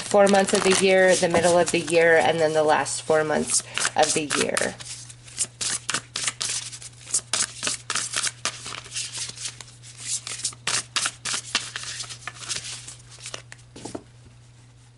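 Cards flick and slap softly as they are shuffled by hand.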